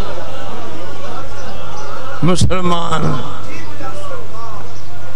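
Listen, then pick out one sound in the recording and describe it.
An elderly man speaks steadily into a microphone, heard through a loudspeaker system.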